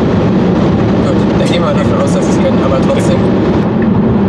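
A young man talks and laughs nearby.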